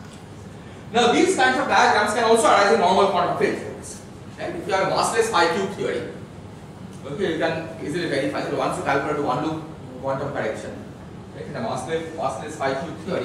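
A man lectures.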